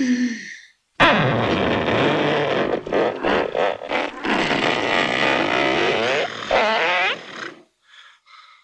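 A middle-aged man yells loudly in a long drawn-out cry.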